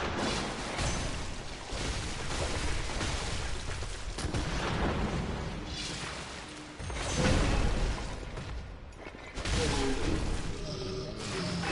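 Blades slash and strike flesh.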